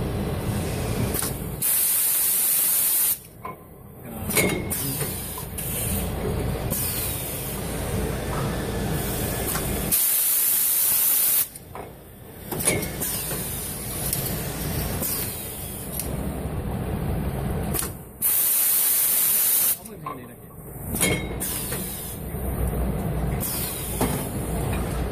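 A bottling machine runs with a steady mechanical clatter.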